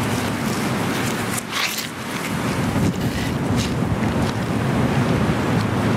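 Footsteps tap on brick paving.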